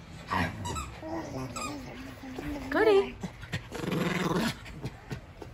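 A schipperke growls while worrying a plush toy.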